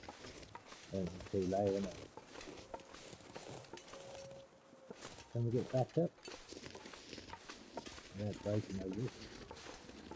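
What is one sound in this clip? A man talks into a microphone in short bursts.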